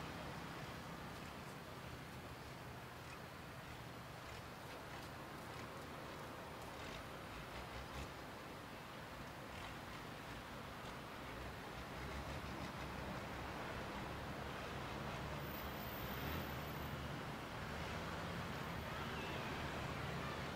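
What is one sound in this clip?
Traffic drives past on a nearby road.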